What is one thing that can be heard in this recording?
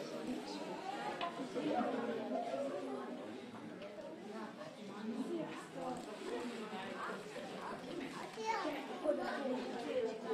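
A woman talks to the children.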